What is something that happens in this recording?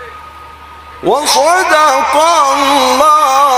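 A man chants loudly in a long, wavering melodic voice through a microphone and loudspeakers.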